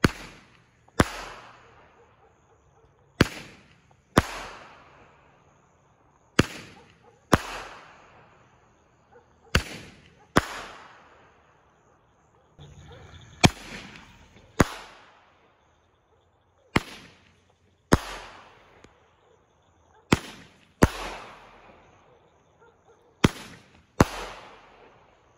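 Fireworks sparkle and crackle as they fall.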